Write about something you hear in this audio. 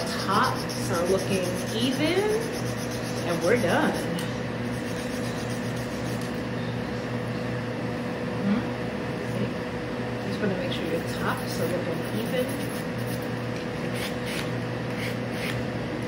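A nail file scrapes back and forth across a fingernail.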